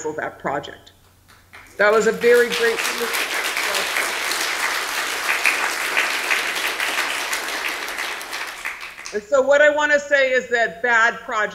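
A woman speaks with animation through a loudspeaker in a large room.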